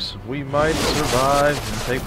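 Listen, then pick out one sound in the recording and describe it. Lightning cracks down in a sharp burst.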